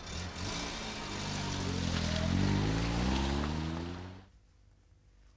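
A car engine revs up and pulls away, then fades.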